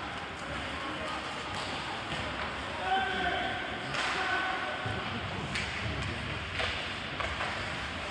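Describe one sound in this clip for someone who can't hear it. Skate blades scrape across ice in a large echoing rink.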